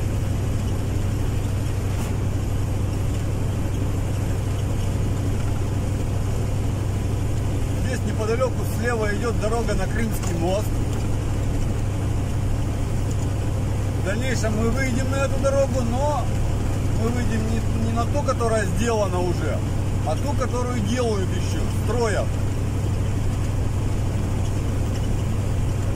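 Tyres roll on an asphalt road with a steady rushing noise.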